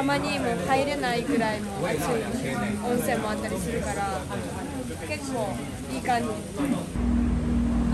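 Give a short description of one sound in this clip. Shallow water laps and splashes around feet.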